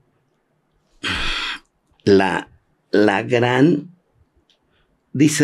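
An elderly man speaks with animation close to a microphone, in short bursts.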